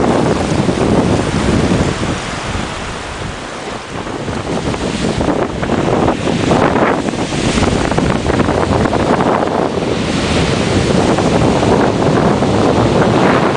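Waves wash over rocks and break along the shore, swelling and easing.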